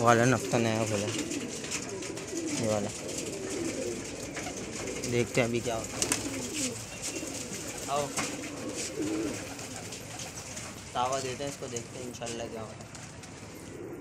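Pigeons coo close by.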